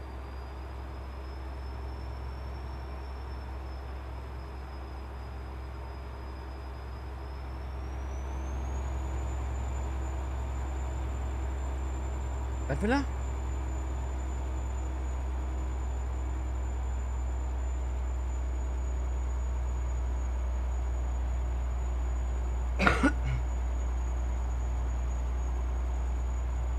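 A truck engine hums steadily at a low pitch.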